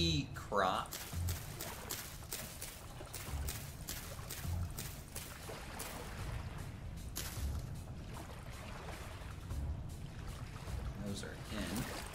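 Seeds are pressed into soil with quick soft taps.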